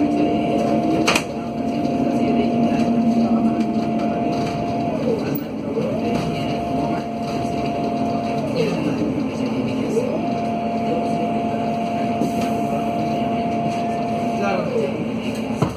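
A bus motor whines, its pitch dropping and rising again.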